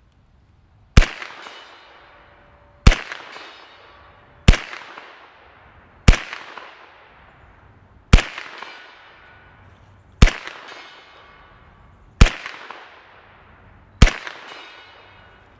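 A shotgun fires sharp shots one after another, each echoing among trees outdoors.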